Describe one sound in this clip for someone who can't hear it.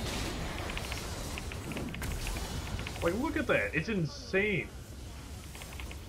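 Fantasy game spells whoosh and crackle.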